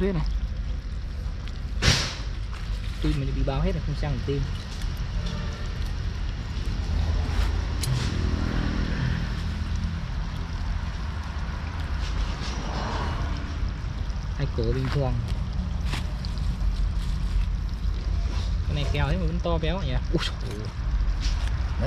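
Scissors snip through poultry bones.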